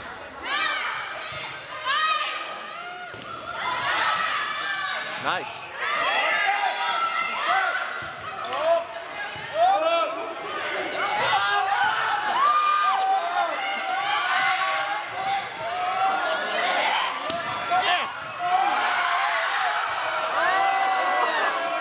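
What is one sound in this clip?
Spectators and players shout and cheer in a large echoing gym.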